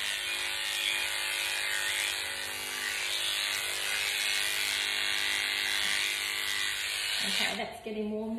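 Electric clippers buzz steadily close by.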